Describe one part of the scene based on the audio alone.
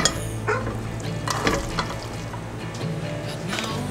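Cooked pasta tumbles from a plastic strainer into a metal pot.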